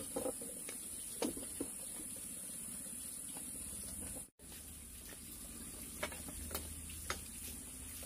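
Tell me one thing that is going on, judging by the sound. Dishes clink on a wooden table.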